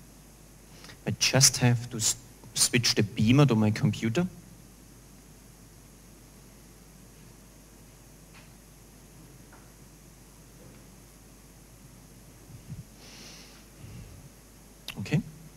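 A man speaks through a microphone in a large room, in short bursts.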